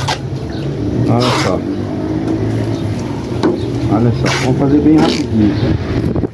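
Masking tape rips as it is pulled off a roll.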